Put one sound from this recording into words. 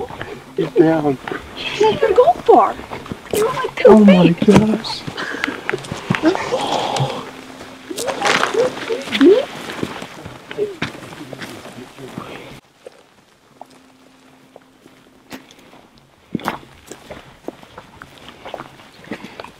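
Footsteps crunch on dry grass and twigs.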